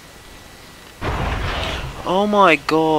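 A magical blast whooshes.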